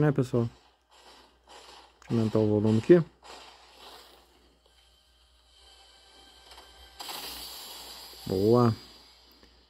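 A mobile game plays sound effects through a small phone speaker.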